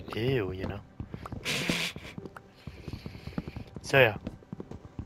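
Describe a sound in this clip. Wooden blocks are chopped with short, dull knocks.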